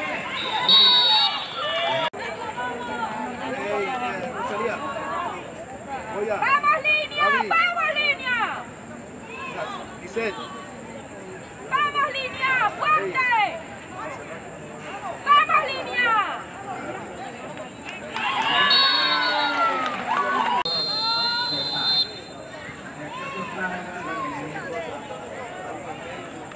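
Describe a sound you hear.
Young women shout to each other across an outdoor field.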